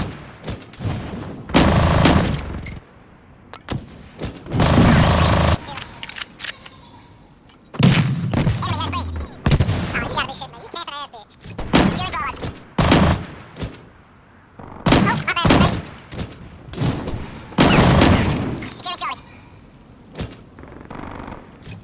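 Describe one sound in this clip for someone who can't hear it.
Loud rifle shots crack and echo in bursts.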